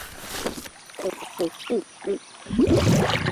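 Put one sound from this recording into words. A cartoon zebra gulps down a drink.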